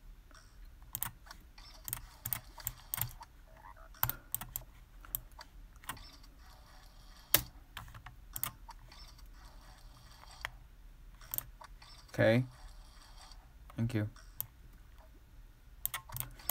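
Short electronic blips sound now and then.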